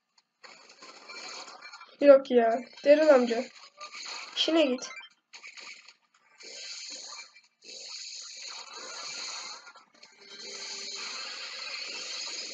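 Electronic game sound effects chime and buzz steadily.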